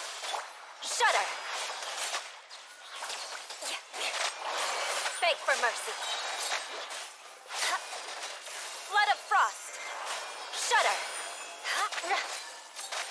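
A game character shouts battle cries.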